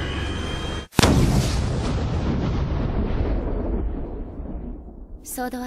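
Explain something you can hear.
A rifle fires a single loud shot that rings out and slowly fades.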